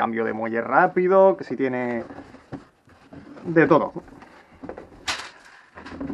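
A cardboard lid scrapes as it is lifted off a box.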